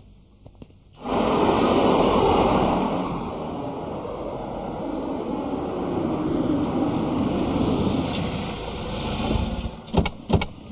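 A car drives past on a road.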